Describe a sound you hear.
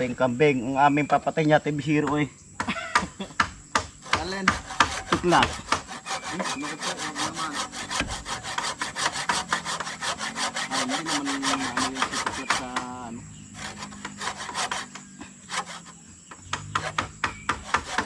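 A tool scrapes and knocks on wood in quick, steady strokes.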